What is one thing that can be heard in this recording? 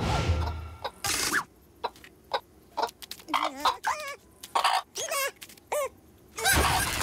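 Hens cluck in short, sharp bursts.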